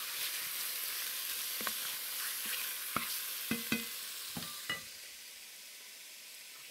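Meat sizzles in a hot pot.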